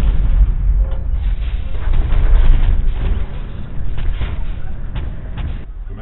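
A heavy machine rumbles and clanks as it moves.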